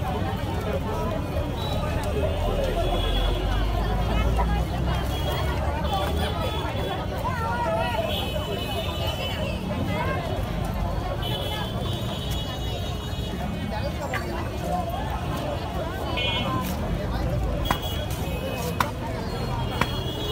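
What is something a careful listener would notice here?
A busy outdoor crowd murmurs with many voices all around.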